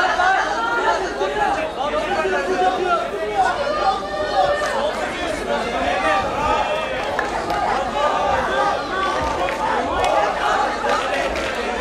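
A crowd of men and women shouts and cheers excitedly.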